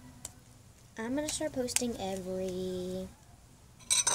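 A young girl talks in a drawn-out, sing-song voice close by.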